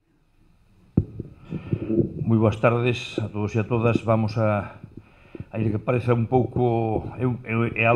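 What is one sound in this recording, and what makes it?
An elderly man speaks calmly into a microphone over a loudspeaker.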